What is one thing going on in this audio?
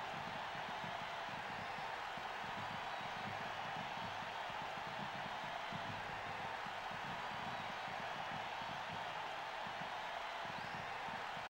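A crowd murmurs and cheers steadily.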